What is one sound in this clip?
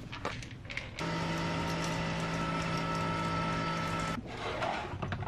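A coffee maker hums steadily as it brews.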